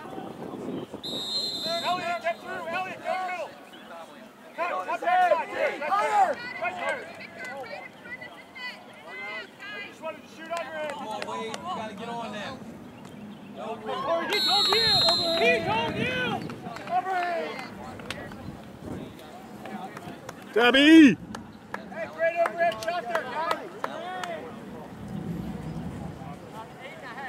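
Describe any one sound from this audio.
Men and women on the sideline shout and cheer excitedly close by.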